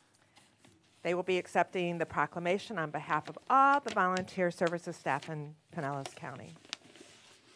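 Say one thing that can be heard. A woman speaks with feeling into a microphone.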